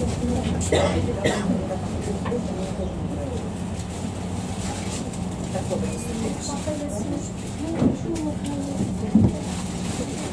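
Tram wheels clatter and knock on the rails.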